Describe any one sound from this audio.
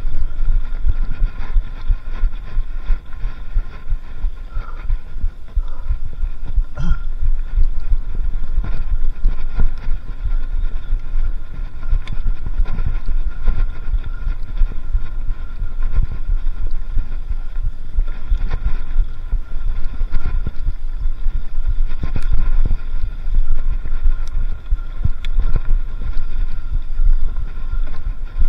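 A bicycle's parts clatter and knock over bumps.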